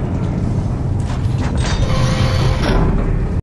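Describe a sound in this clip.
A heavy metal door slides shut with a hiss.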